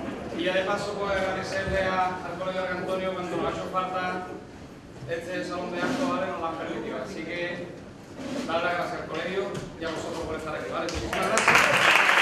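A group of men sing together in chorus.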